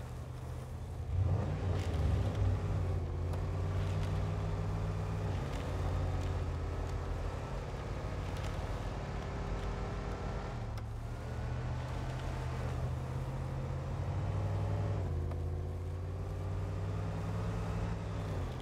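A truck engine rumbles and revs as it drives.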